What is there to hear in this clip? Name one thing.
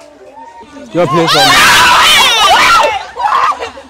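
A group of young women shriek together close by.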